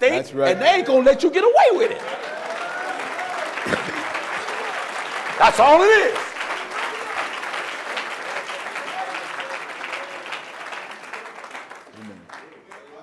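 A crowd applauds and cheers.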